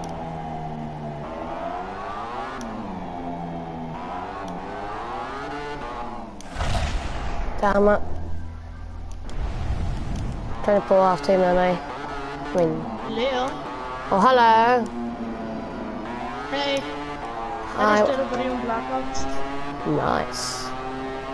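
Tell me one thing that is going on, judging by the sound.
A motorcycle engine revs, its whine rising and falling with gear changes.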